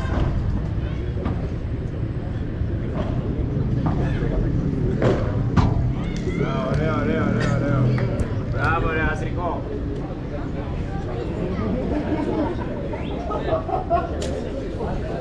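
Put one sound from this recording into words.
A padel ball pops off rackets with sharp hits.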